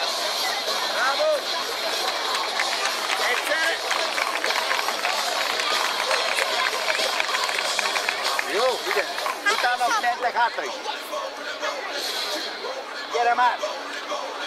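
Children and adults call out and shout in the crowd.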